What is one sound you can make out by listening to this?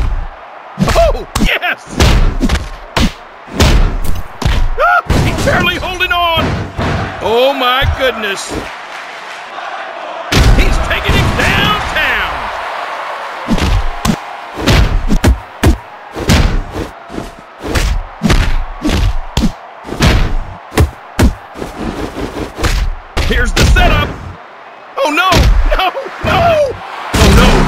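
Video game punch sound effects land with heavy thuds.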